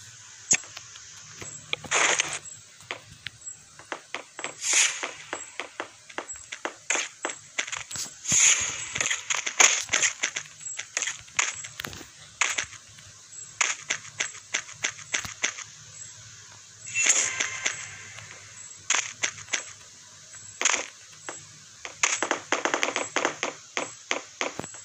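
Quick tapping clicks of blocks being placed and struck in a video game come in rapid bursts.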